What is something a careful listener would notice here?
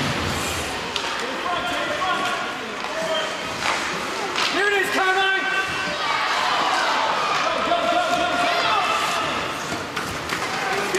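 A hockey stick smacks a puck.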